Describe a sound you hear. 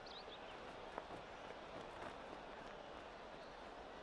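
A golf club strikes a ball with a crisp click.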